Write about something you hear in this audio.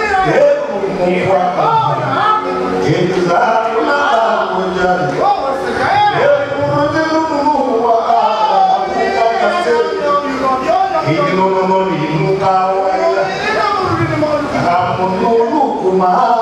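A middle-aged man sings passionately into a microphone over a loudspeaker.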